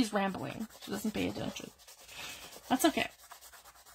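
A hand rubs across paper with a soft rustle.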